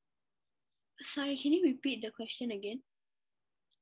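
A young girl speaks briefly and casually, close to the microphone.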